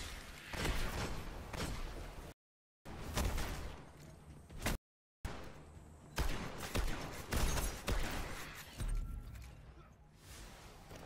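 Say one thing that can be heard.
Guns fire in rapid, loud bursts.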